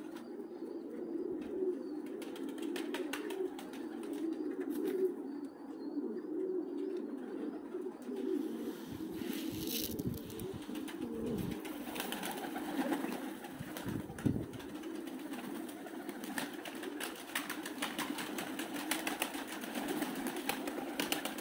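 Many pigeons coo steadily close by.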